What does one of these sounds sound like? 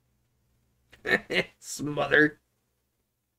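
A middle-aged man speaks briefly and with animation, close to a microphone.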